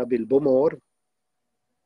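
An elderly man speaks briefly and calmly, close to a microphone.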